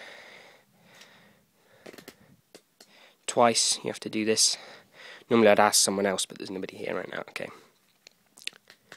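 Playing cards rustle and snap softly as a deck is handled.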